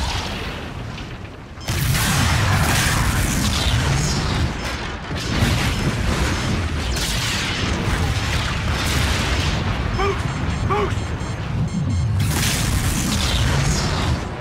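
Wind rushes loudly past a skydiver in free fall.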